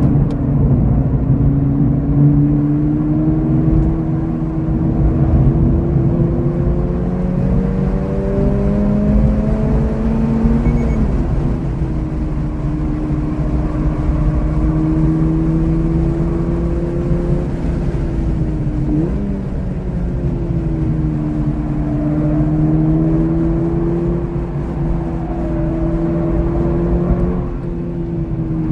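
A car engine roars from inside the cabin, rising in pitch as it speeds up and dropping at gear changes.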